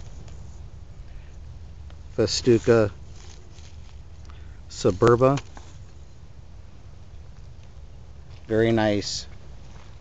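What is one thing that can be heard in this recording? Wind blows across open grass.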